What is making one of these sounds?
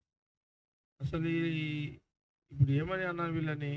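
A middle-aged man speaks firmly and with emphasis into a microphone.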